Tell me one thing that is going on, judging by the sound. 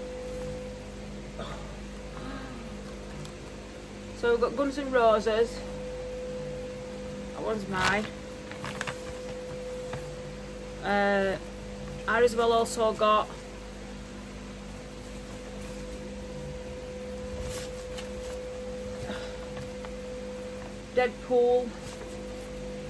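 Fabric rustles as a shirt is unfolded and shaken.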